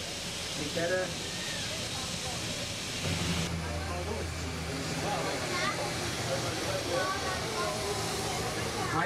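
A jet airliner's engines roar steadily nearby outdoors.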